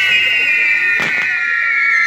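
A firework cracks sharply.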